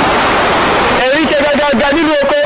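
An elderly man calls out loudly, close by, outdoors.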